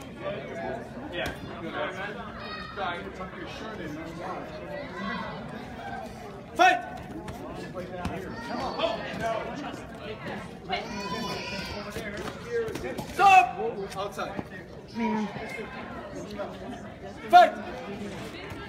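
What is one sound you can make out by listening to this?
Spectators talk and shout around the mat, indoors with some echo.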